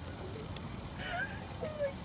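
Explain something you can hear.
Another young woman laughs and giggles close by.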